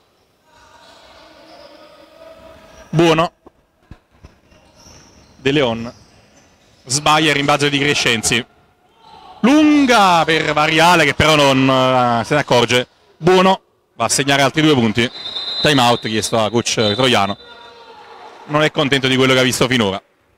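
Sneakers squeak on a hard court in an echoing hall.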